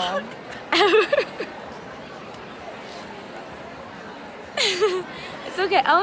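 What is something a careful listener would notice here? A young woman speaks excitedly close to the microphone, with a high, lively voice.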